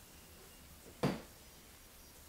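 A glass bottle clinks against a glass.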